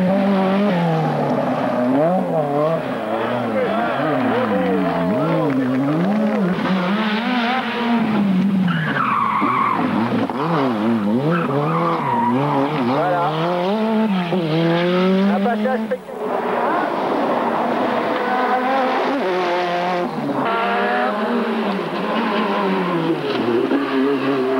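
Rally car engines roar and rev up and down as the cars race past at speed.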